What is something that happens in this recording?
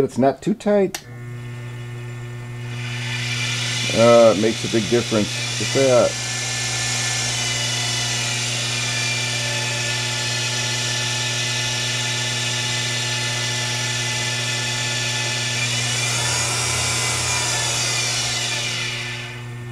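A small electric motor starts and hums steadily.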